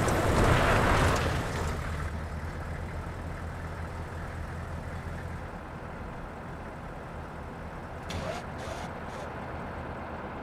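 An engine idles with a low, steady rumble.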